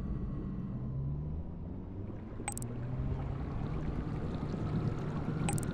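A small submarine's motor hums low and steady underwater.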